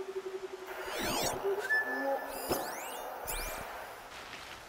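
Bright electronic chimes sweep up and down in quick bursts.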